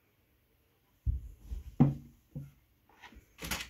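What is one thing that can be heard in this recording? A cat shifts and thumps on a wooden shelf.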